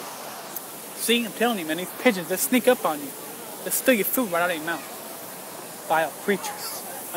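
A young man talks casually and close by.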